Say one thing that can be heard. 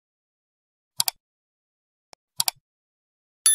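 A computer mouse clicks twice.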